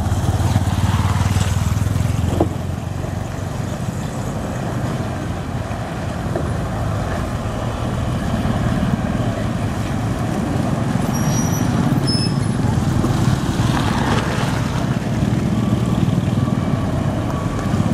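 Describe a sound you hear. A heavy diesel truck grinds slowly over a potholed road.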